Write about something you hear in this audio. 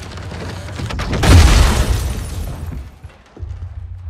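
A door bursts apart with a loud shattering crash.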